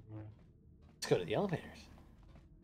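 A man talks into a microphone up close.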